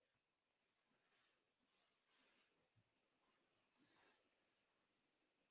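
A woman's clothes rustle as she gets up and moves close by.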